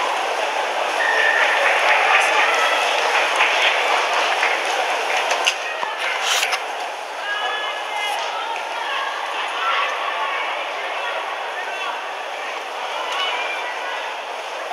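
A large crowd cheers and claps outdoors.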